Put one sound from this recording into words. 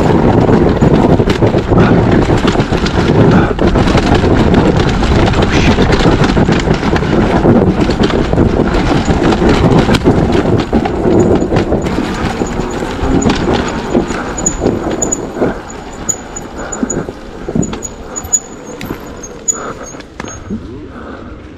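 A dirt bike engine roars loudly close by, rising and falling as it rides.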